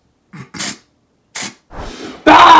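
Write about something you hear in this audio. A spray can hisses in short bursts.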